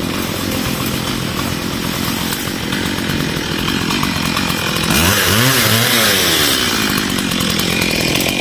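A petrol brush cutter buzzes steadily nearby, its engine rising and falling.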